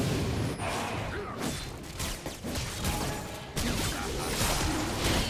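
Game combat effects clash and crackle in quick bursts.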